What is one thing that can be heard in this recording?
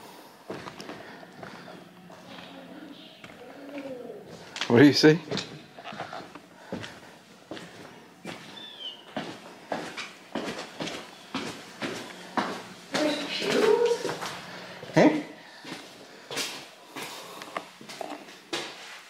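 Footsteps crunch on debris and echo through a large empty hall.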